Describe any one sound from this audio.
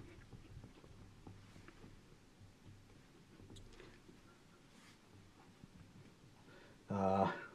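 A cloth rubs and squeaks across a glass board.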